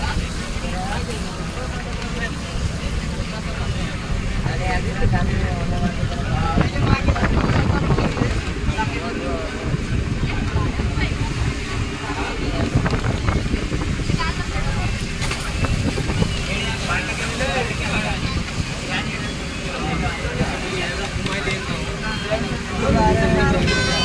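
Wind rumbles loudly outdoors on open water.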